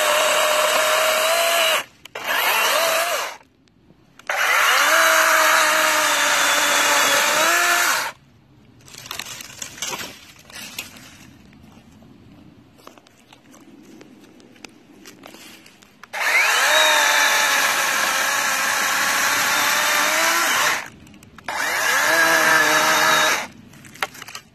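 An electric chainsaw whirs loudly in bursts as it cuts through branches.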